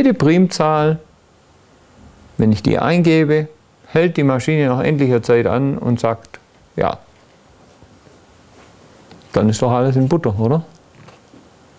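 An elderly man speaks calmly and deliberately in a room with some echo, pausing between phrases.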